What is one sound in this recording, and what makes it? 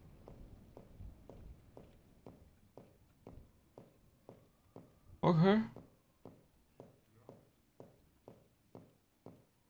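Slow, even footsteps thud on a hard floor.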